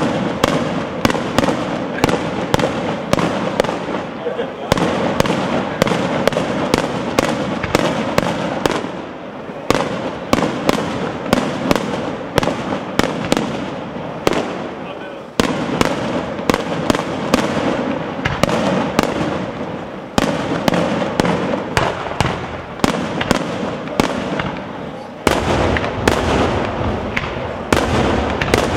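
Firework shells burst with deep booms that echo between buildings.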